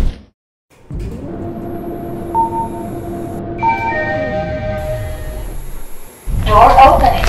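An elevator motor hums steadily as the car moves.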